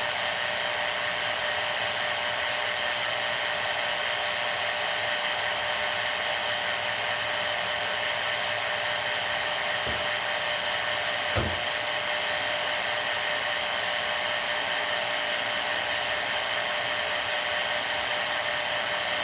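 Static hisses steadily from a small radio's loudspeaker.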